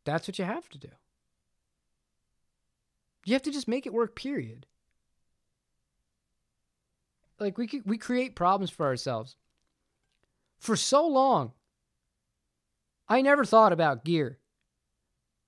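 A young man speaks calmly and closely into a microphone, in short phrases with pauses.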